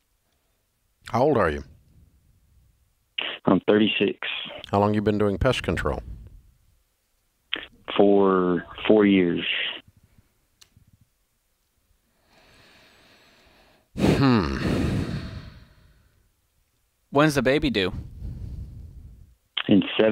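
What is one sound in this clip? A middle-aged man speaks calmly and close to a microphone, in short bursts.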